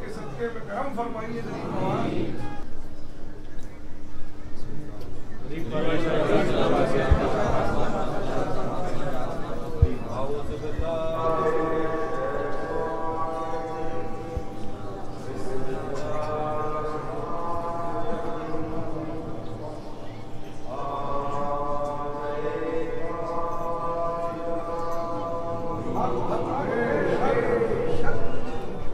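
A crowd of men talks and calls out in a large echoing hall.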